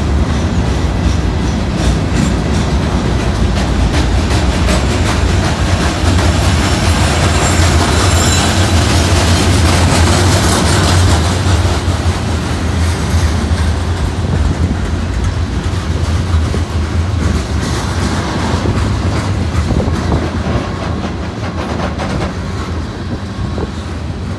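A freight train rumbles past close by, heavy and steady.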